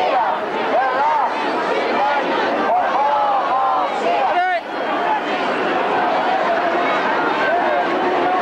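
Many people in a crowd talk at once.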